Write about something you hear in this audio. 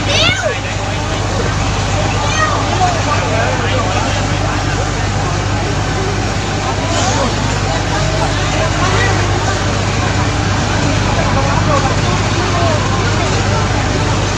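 Men and women talk loudly over one another nearby, outdoors.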